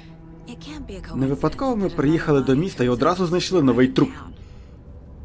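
A second woman speaks in a low, serious voice.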